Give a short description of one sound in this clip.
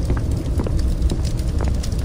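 A small fire crackles nearby.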